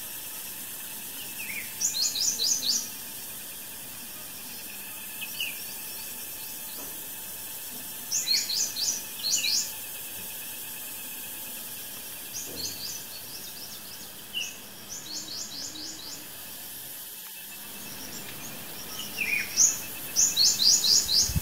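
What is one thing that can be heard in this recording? Serving spoons scrape and clink against metal alms bowls.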